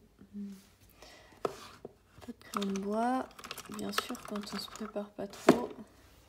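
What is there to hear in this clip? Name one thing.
Sheets of card rustle and slide as they are handled.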